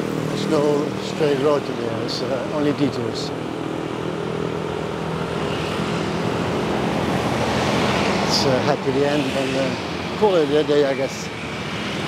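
Motor scooters ride past on a road.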